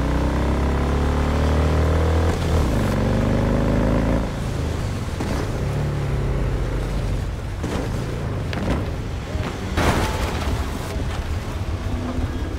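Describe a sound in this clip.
A motorcycle engine roars and revs, then slows to a low idle.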